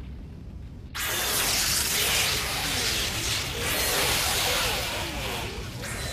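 Sparks crackle and hiss.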